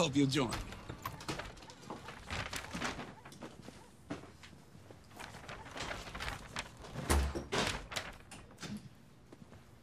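Shopping bags rustle as people come in.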